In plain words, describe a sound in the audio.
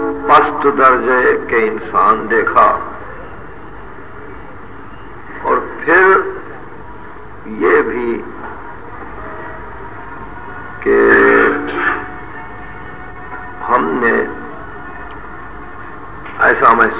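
An elderly man speaks slowly, with long pauses, heard through an old recording.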